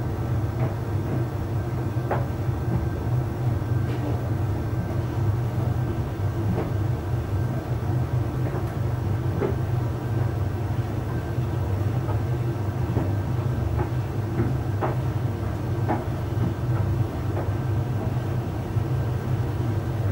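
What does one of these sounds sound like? Buttons or zips tick against a dryer drum now and then.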